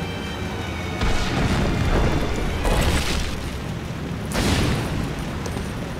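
Stone blocks crumble and crash down with a rumble.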